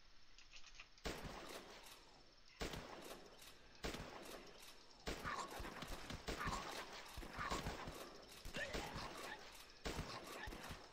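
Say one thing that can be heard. Rifles fire rapid gunshots.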